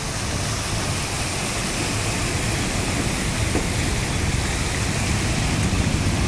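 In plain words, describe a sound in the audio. Water splashes and sloshes under passing wheels.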